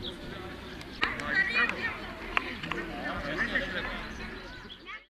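Children shout and cheer excitedly.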